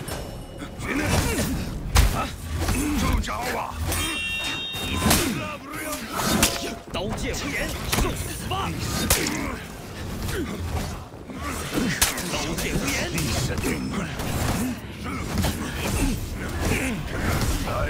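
Swords clash and ring sharply again and again.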